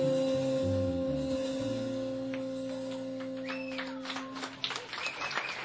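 A saxophone plays long held notes.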